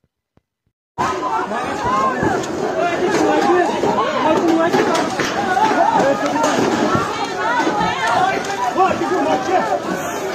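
A crowd of men and women shout and talk excitedly nearby, outdoors.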